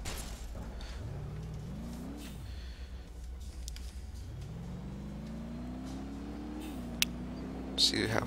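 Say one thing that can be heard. A car engine revs up and drops back.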